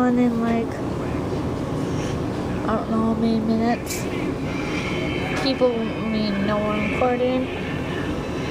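A young woman speaks close up, with animation.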